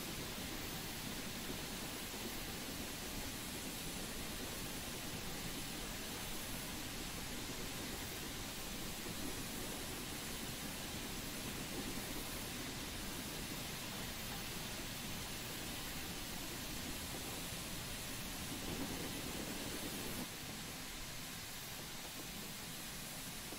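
A steam locomotive chugs and rumbles steadily along the track.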